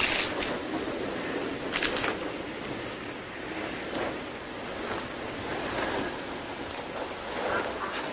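Bicycles roll along a path outdoors.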